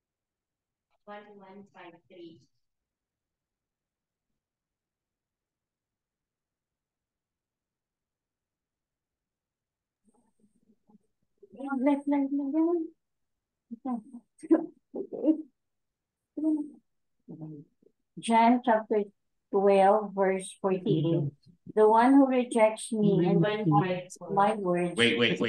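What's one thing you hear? A woman speaks over an online call in short bursts.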